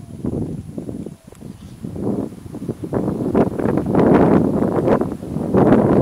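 A herd of elephants tramples through tall grass, rustling and crunching the stems.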